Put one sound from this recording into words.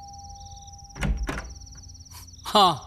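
A door handle rattles and a door opens with a knock.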